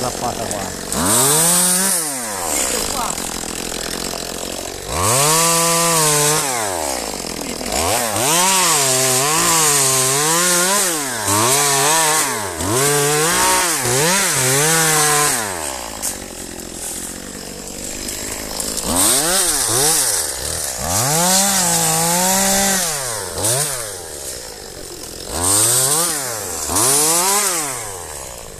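A chainsaw revs up and down in repeated bursts, close by.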